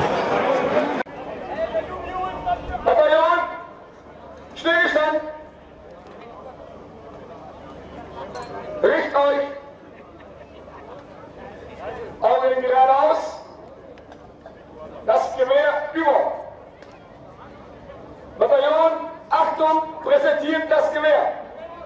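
A man speaks into a microphone over a loudspeaker outdoors, in bursts with pauses.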